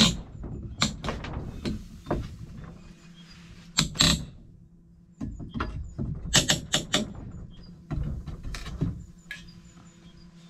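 A staple gun snaps sharply several times.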